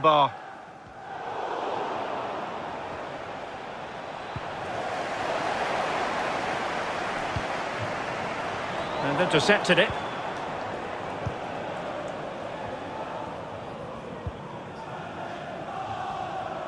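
A stadium crowd roars steadily in the distance.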